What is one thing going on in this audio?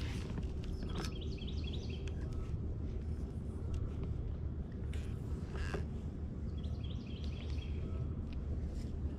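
A fishing reel ticks as its handle is cranked.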